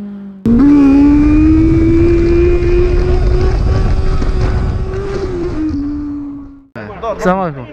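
A motorcycle engine roars loudly at high revs and then eases off.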